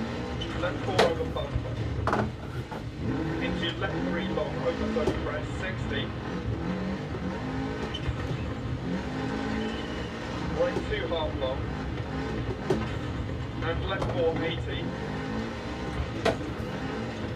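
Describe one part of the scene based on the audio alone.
Plastic gear paddles click sharply now and then.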